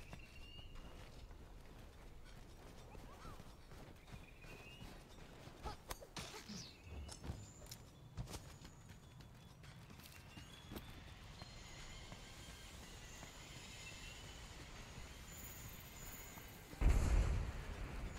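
Armoured footsteps crunch over snow and rock.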